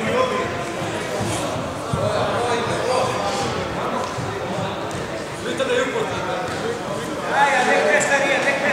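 A crowd of men and women chatters throughout a large echoing hall.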